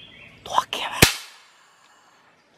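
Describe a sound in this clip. A single gunshot cracks sharply nearby and echoes briefly.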